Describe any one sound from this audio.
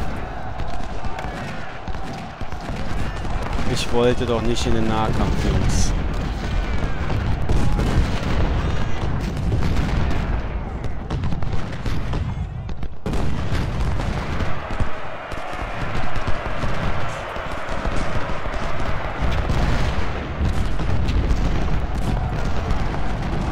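Cannons boom with deep rumbling blasts.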